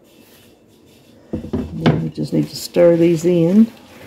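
A spatula scrapes and stirs a mixture in a glass bowl.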